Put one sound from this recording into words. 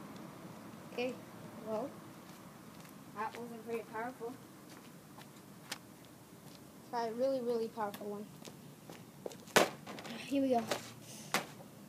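A young boy talks with animation close by.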